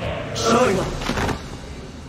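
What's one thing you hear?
A young man speaks into a nearby microphone.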